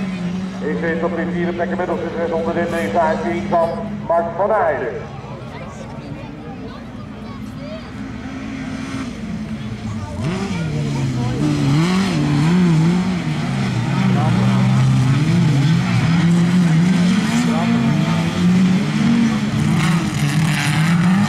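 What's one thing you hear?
Car engines roar and rev outdoors.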